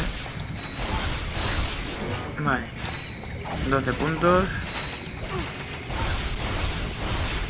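Sci-fi blaster shots zap and crackle.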